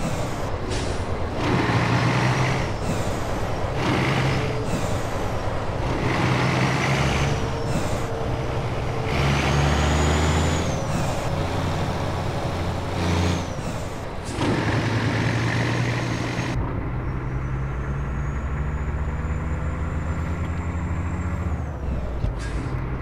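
A heavy truck engine rumbles steadily as it drives along.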